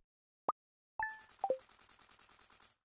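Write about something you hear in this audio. Rapid electronic ticking blips run as numbers tally up.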